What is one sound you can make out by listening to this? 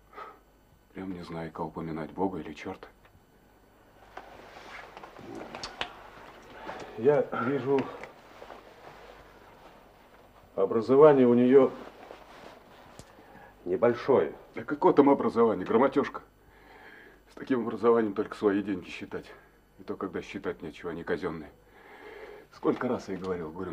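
A middle-aged man speaks earnestly nearby.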